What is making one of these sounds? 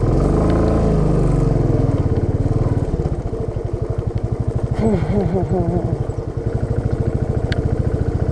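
Motorcycle tyres crunch over a rough gravel track.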